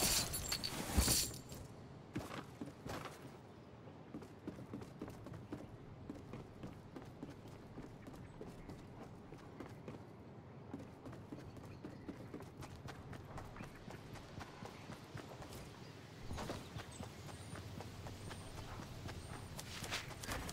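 Footsteps patter quickly on wooden floors and grass.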